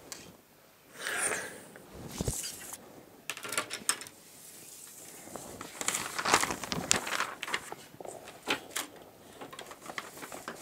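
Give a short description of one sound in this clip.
Paper rustles and crinkles as it is folded and moved.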